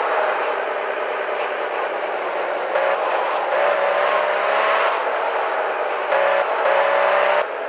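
A sports car engine roars steadily.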